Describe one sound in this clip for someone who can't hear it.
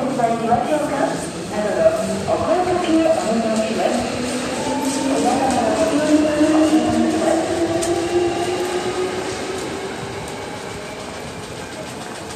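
An electric train pulls away with a rising motor whine that slowly fades.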